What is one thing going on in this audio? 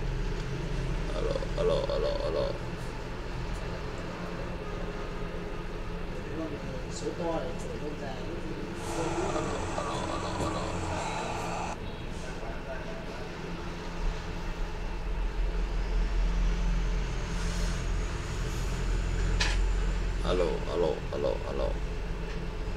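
A young man speaks briefly and calmly close by.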